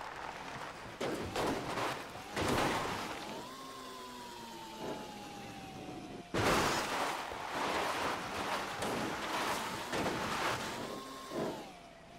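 A cart's wheels crash and bump over rocks.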